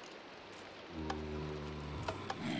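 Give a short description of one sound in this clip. A game villager grunts with short low nasal hums.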